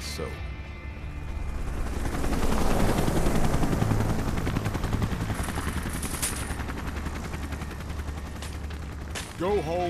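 A helicopter roars as it hovers close overhead.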